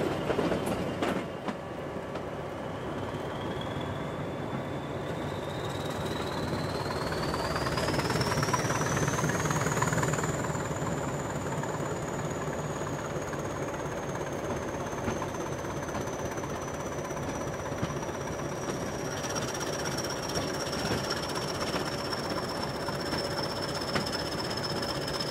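A diesel locomotive engine rumbles steadily close by.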